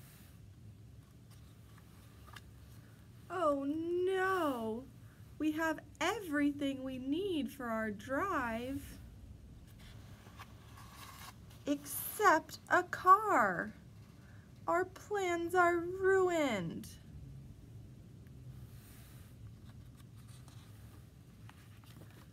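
A paper page turns.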